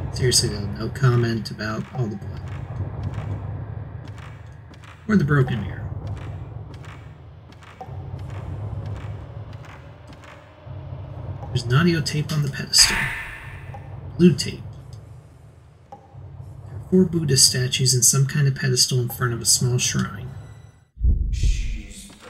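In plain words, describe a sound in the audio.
Footsteps tread slowly across a wooden floor.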